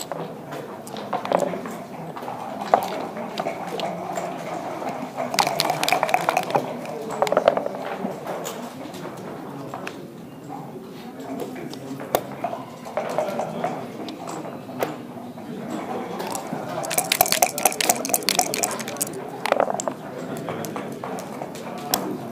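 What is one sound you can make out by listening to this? Plastic game pieces clack and slide on a wooden board.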